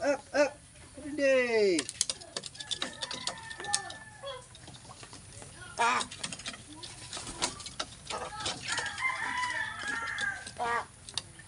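A bird squawks loudly and repeatedly, close by.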